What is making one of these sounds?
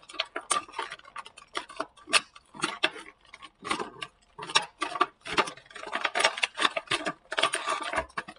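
Plastic packaging crinkles and rustles as it is handled close by.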